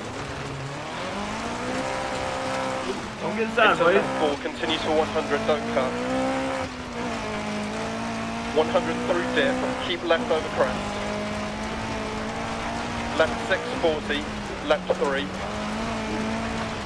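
A rally car engine revs and shifts up through the gears.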